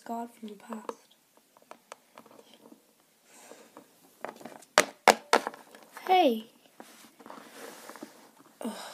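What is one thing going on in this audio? A small plastic toy taps lightly on a hard surface.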